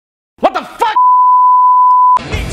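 A steady high test tone beeps.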